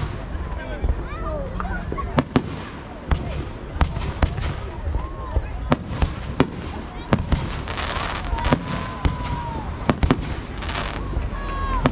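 Firework sparks crackle as they fall.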